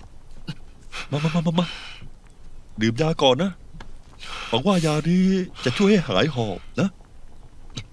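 A man speaks urgently up close.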